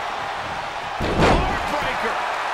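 A wrestler slams heavily onto the ring mat with a loud thud.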